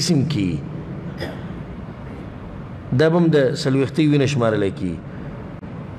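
A man speaks calmly and clearly into a close microphone.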